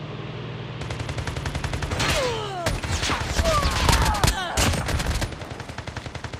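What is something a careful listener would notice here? Rapid gunfire bursts out close by.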